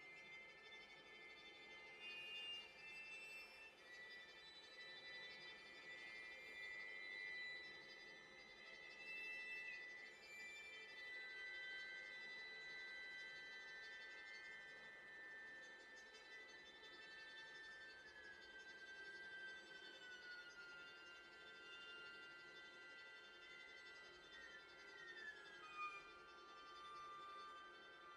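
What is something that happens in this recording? A violin plays long, high held notes that slide between pitches.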